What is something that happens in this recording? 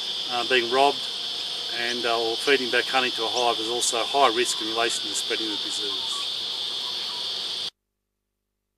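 A middle-aged man speaks calmly and close by, outdoors.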